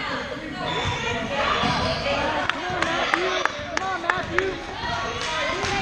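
A crowd of children and adults chatters throughout.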